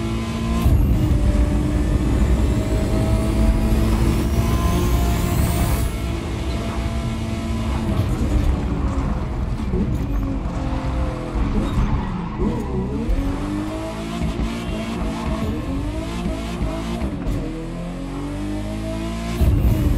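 A car engine roars at high speed, then drops lower and revs up again.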